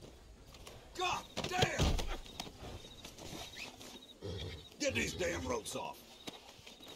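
A man grunts and strains up close.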